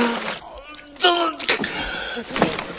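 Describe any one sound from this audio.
A young man shouts in alarm.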